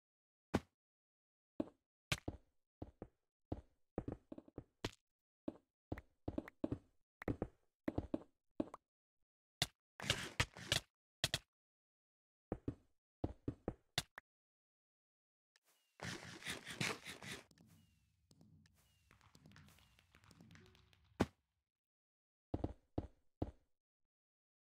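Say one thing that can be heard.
Blocks are placed in quick, sharp clicks.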